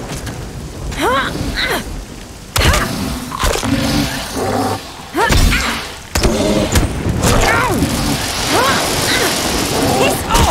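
A young woman cries out in alarm.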